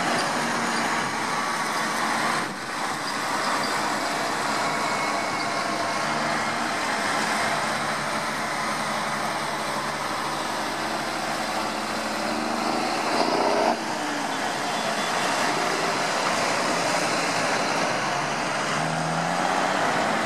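Tractor engines rumble loudly as they pass one after another.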